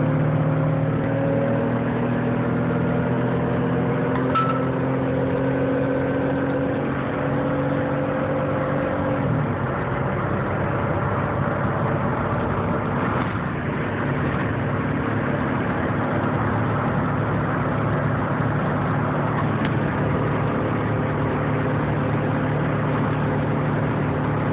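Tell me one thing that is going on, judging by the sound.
A car engine hums steadily at speed, shifting in pitch.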